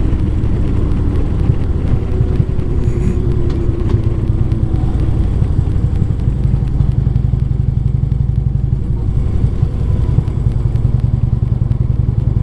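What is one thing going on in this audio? Wind buffets past the rider.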